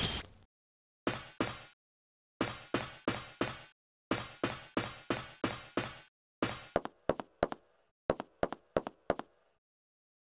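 Boots run across a metal grating floor.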